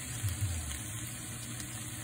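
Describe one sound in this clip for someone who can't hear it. A spatula scrapes and stirs food in a frying pan.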